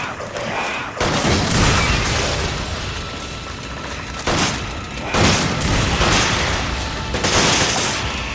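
A gun fires several loud, echoing shots.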